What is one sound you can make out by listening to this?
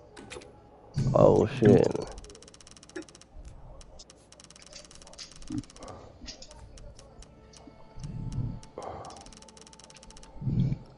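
Soft menu clicks tick rapidly as a number counts up and down.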